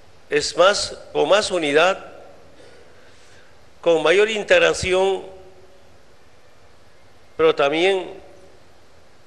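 A man speaks slowly and deliberately into a microphone in a large echoing hall, with long pauses.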